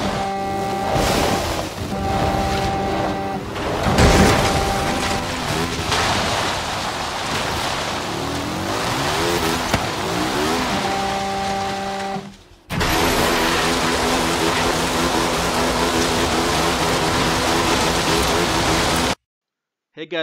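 A small car engine revs and roars.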